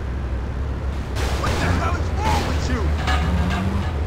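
A van crashes into a post with a loud crunch.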